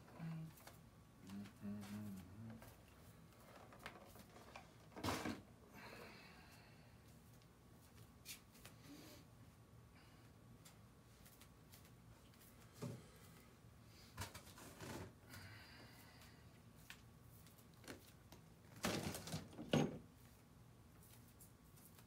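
Bare feet shuffle and thud on a gritty floor.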